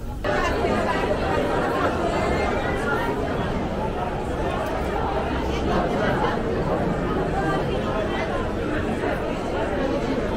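A crowd of men and women chatters all around in a busy echoing hall.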